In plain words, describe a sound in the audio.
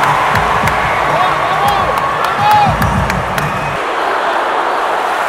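A large crowd cheers and chants loudly in a big echoing hall.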